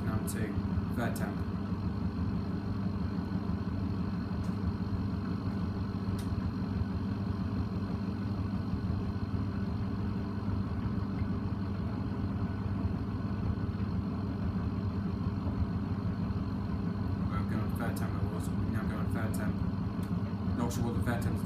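Laundry and water slosh inside a washing machine.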